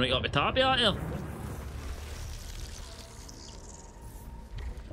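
A shimmering energy burst crackles and fades.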